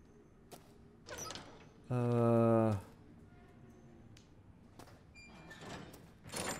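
A young man talks and exclaims loudly into a close microphone.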